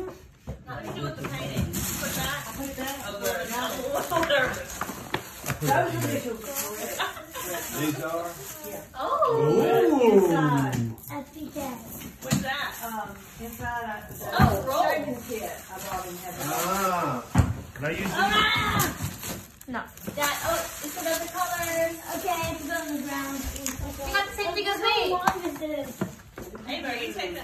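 A paper gift bag rustles.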